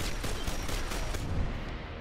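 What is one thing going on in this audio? A gun fires a burst of shots.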